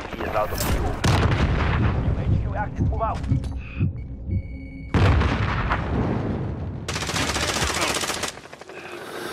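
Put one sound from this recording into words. Rapid gunfire rattles in close, loud bursts.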